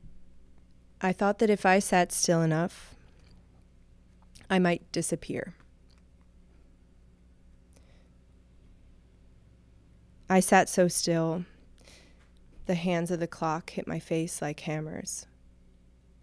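A young woman speaks slowly into a microphone, with long pauses.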